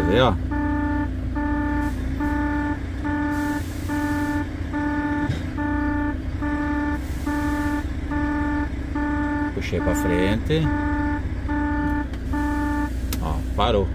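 A warning chime beeps repeatedly inside a car.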